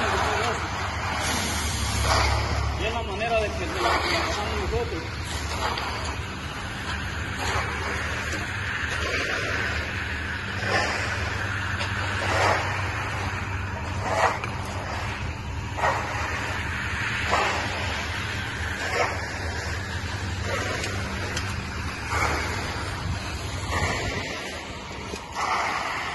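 A float scrapes and swishes across wet concrete.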